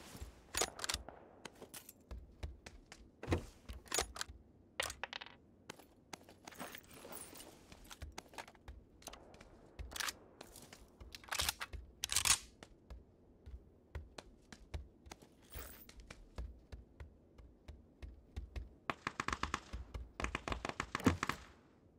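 Footsteps thud and creak on a wooden floor indoors.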